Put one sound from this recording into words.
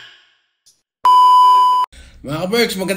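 A steady test tone beeps.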